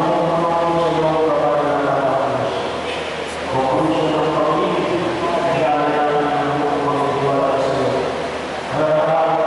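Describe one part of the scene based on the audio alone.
A young woman reads aloud in a steady, chanting voice.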